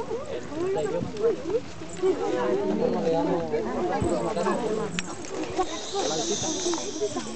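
A young man speaks aloud to a group outdoors.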